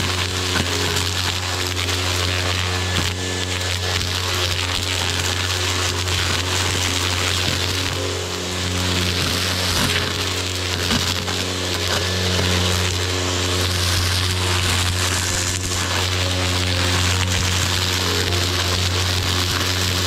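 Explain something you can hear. A string trimmer's line whips and shreds through weeds.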